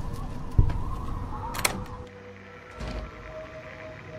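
A door lock clicks open with a key.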